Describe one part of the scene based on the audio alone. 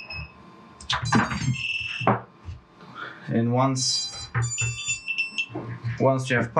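A small drone beeps a short series of electronic tones as it powers on.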